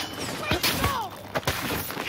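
A blade slashes into a body.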